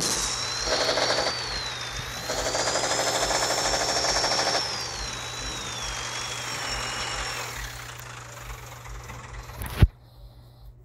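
A truck engine rumbles and whines as the truck drives and slows down.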